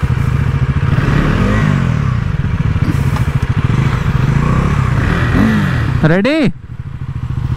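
A motorcycle engine revs up and drops back several times.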